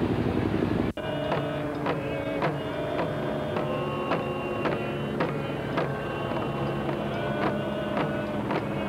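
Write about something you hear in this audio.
Hand drums are beaten in a slow, steady rhythm outdoors.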